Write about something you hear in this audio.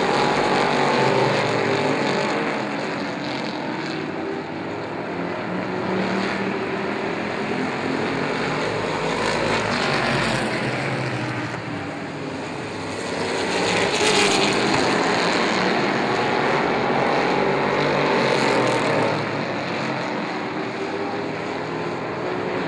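Race car engines roar loudly as the cars speed around the track.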